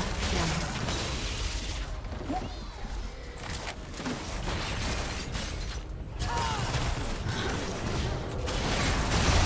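Magic blasts and weapon strikes clash in a video game fight.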